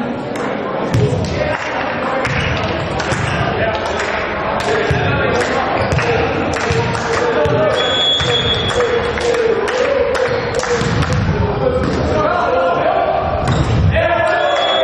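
A volleyball is struck by hand with a sharp slap.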